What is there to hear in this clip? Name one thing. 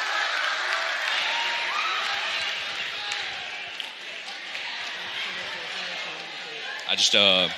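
An audience cheers and applauds in a large hall.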